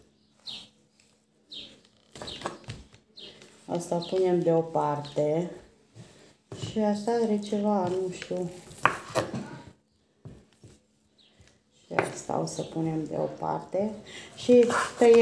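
A knife slices through meat and taps on a wooden board.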